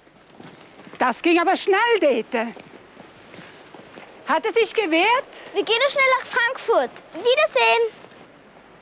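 A young woman speaks clearly and with feeling, close by.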